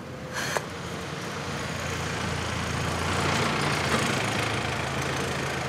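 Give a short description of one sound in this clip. A bus engine rumbles past.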